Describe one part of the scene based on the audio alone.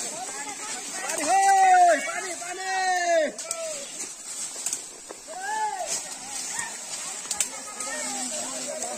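Dry leaves and twigs rustle and crackle as people push through undergrowth.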